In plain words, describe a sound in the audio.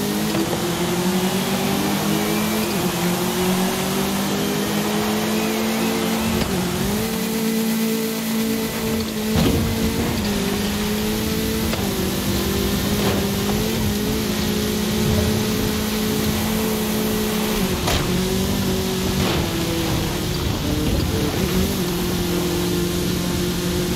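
A car engine roars steadily, shifting gears as it speeds up.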